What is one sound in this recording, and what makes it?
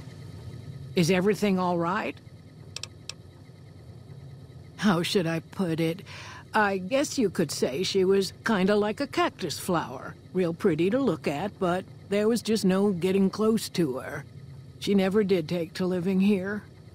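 A woman speaks calmly and close.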